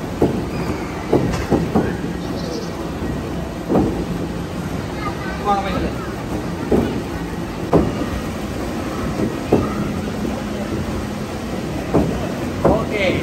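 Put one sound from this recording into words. Plastic balls knock and clatter through a tube.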